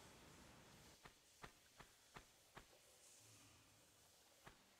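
Footsteps tap on the ground.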